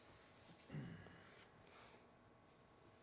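A man speaks briefly and quietly.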